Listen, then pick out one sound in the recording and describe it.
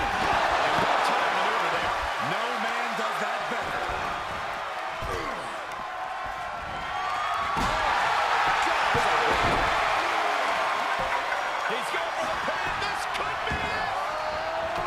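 A large crowd cheers and roars loudly in a big echoing arena.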